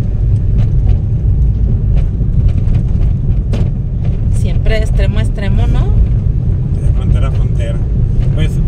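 A car drives along a street with a steady low rumble.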